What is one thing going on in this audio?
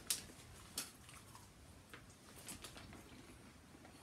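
A young man crunches on chips.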